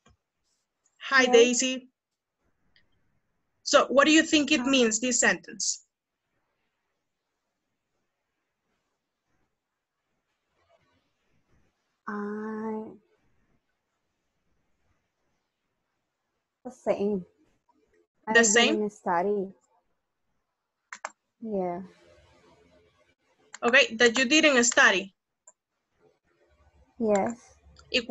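A woman speaks through an online call, in short bursts.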